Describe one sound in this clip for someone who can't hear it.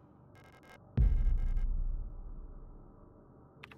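A deep, booming thud sounds once and slowly dies away.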